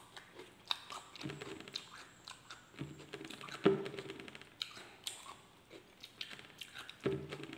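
Fingers squish and pick at soft rice.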